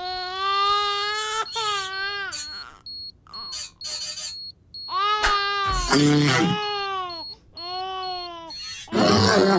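A baby wails loudly.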